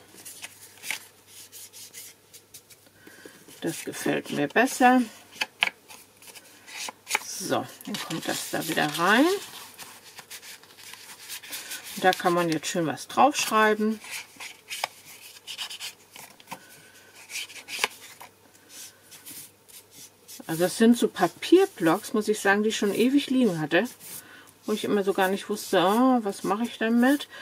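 Paper rustles and scrapes as it is handled.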